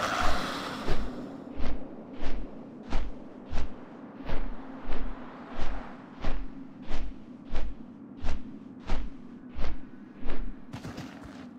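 Large wings beat heavily in a steady rhythm.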